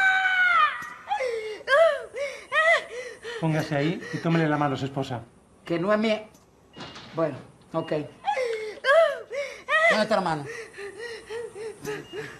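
A young woman moans and cries out in pain in short bursts.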